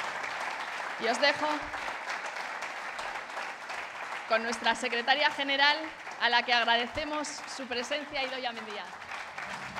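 A woman speaks briefly and cheerfully into a microphone.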